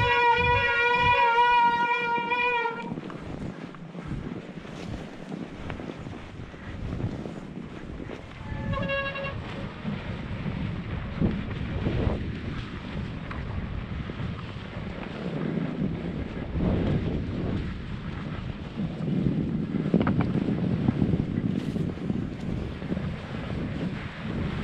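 Bicycle tyres crunch and rumble over packed snow.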